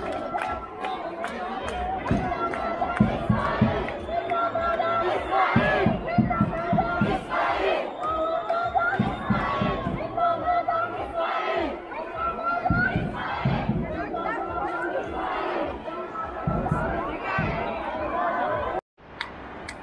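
A large crowd chants loudly in rhythm outdoors.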